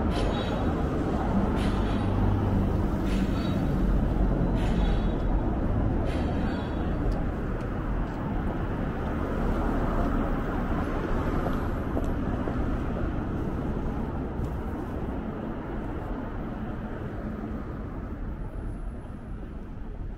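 Traffic rumbles steadily along a city street, growing slowly quieter.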